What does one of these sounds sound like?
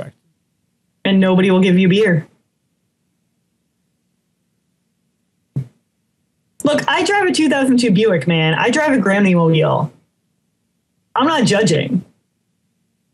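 A woman talks over an online call.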